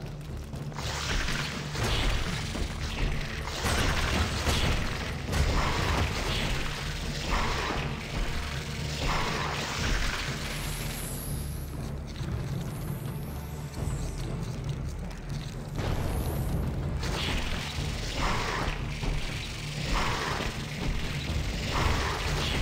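A giant creature's legs skitter and scrape along stone.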